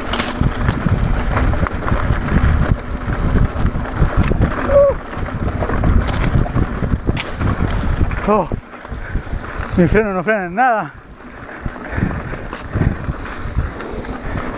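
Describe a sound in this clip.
Bicycle tyres roll and crunch over a rough dirt trail.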